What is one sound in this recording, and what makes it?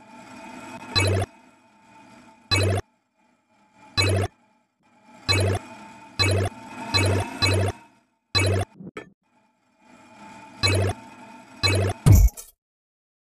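Bright game chimes ring out in quick bursts as coins are collected.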